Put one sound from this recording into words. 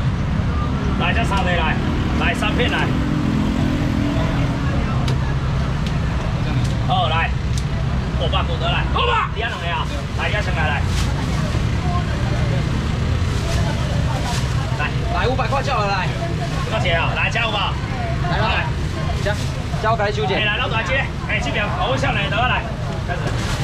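A young man talks loudly with animation nearby.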